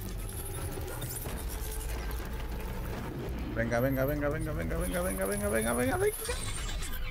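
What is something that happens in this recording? A bow creaks as it is drawn and a glowing arrow hums while it charges.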